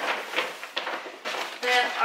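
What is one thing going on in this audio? A paper grocery bag rustles.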